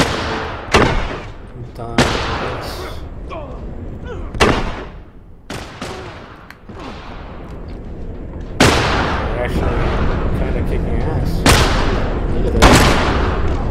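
Gunshots crack and echo through a large hall.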